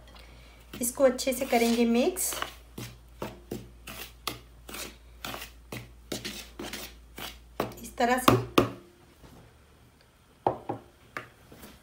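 A spoon scrapes and taps against a bowl while stirring flour.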